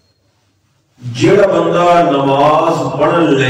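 A man speaks into a microphone, chanting or reciting loudly in a melodic voice.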